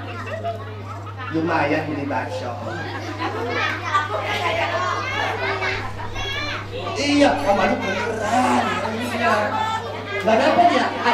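Children chatter and call out.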